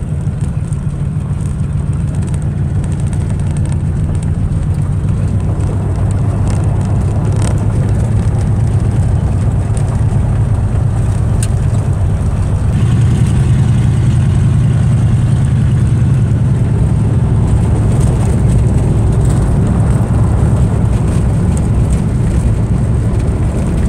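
An old car engine rumbles steadily.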